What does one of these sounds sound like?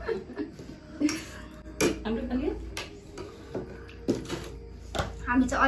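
Cutlery clinks on plates.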